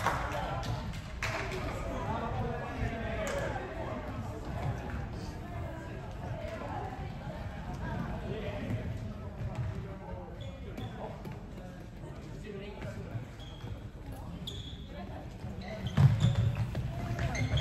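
Floorball sticks clack against a ball in a large echoing hall.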